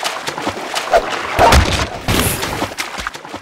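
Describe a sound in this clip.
A crowbar smashes a wooden crate.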